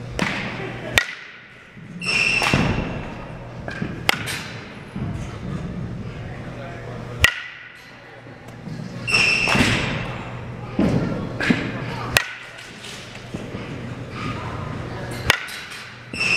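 A metal softball bat pings against a ball.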